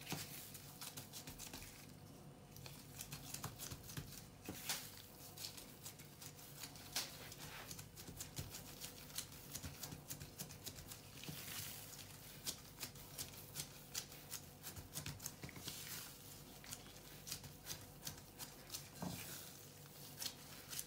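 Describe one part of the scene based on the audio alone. Rubber gloves squeak and crinkle against the dough.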